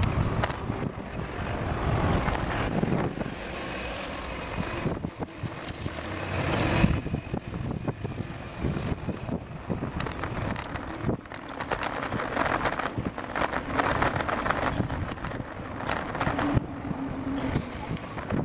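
Bicycle tyres hum along an asphalt road.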